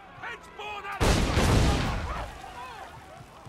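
An explosion booms loudly and fades.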